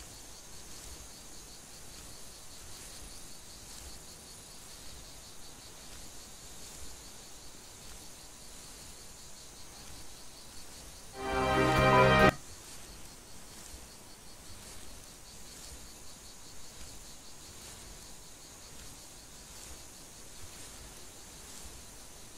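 Footsteps crunch softly on dry dirt.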